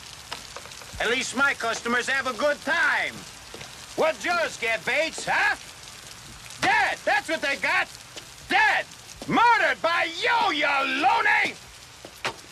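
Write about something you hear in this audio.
A man speaks nearby, tense and urgent.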